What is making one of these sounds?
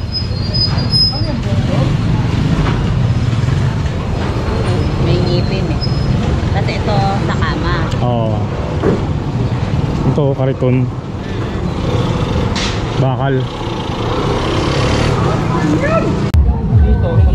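A man talks close by in a lively way.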